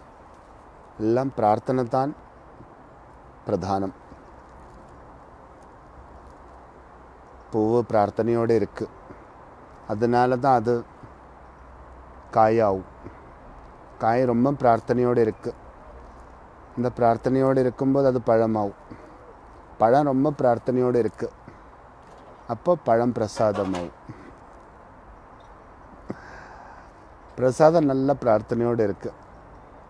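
A middle-aged man speaks calmly and slowly in short phrases, close to the microphone.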